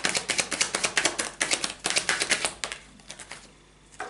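Playing cards riffle and flick quickly as they are shuffled.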